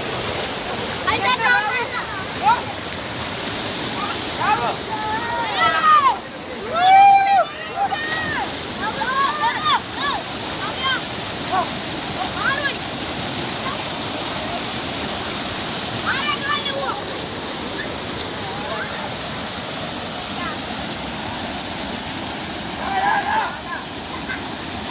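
Rushing water roars steadily over rocks outdoors.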